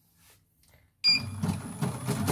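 A sewing machine starts up and whirs with a rattle.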